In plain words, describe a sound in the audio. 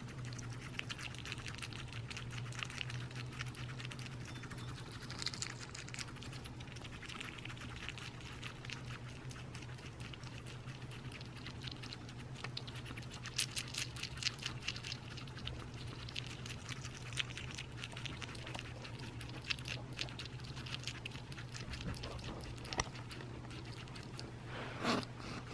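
A hedgehog crunches and chews insects with small wet clicks, close by.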